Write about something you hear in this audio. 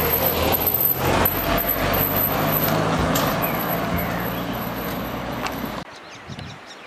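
A car engine hums as the car drives away along a rough road.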